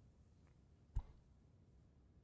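Snooker balls click together as they scatter.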